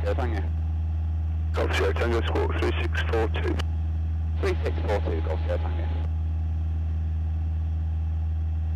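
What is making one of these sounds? The four-cylinder piston engine of a Cessna 172 drones in cruise, heard through a headset intercom.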